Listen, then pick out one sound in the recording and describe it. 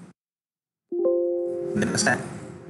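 A computer alert tone chimes once.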